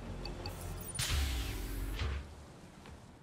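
A pair of sliding metal doors whooshes open.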